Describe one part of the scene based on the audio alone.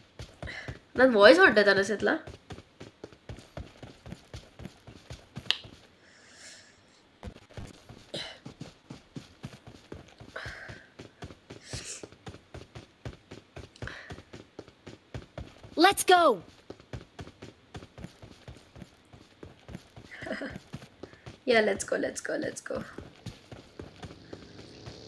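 Quick footsteps run over the ground.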